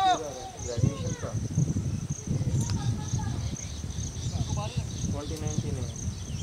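Men shout from across the field.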